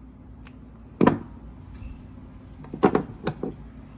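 Wooden boards knock sharply against each other and a table.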